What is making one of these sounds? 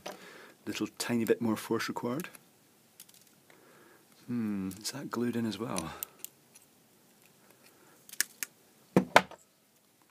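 Metal cutters snip and click.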